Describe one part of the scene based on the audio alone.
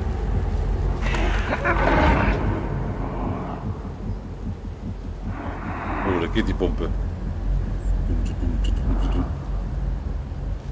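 A man talks calmly and close to a microphone.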